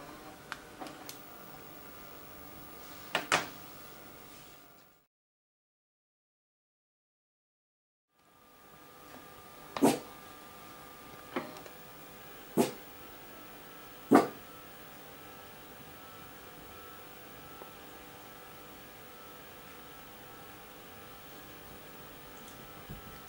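An old computer monitor hums steadily.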